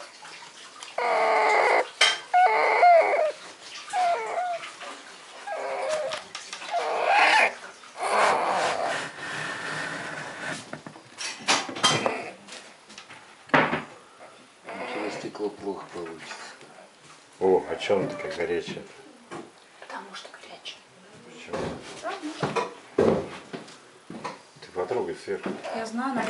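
Puppies whimper and squeal close by.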